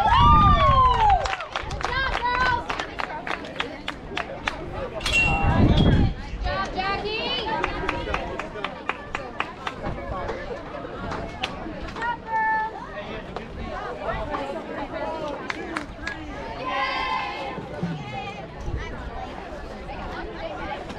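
Young players cheer and shout outdoors.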